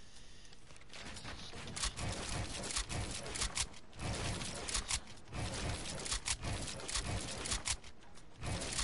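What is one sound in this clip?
Building pieces slam and clatter loudly in a game.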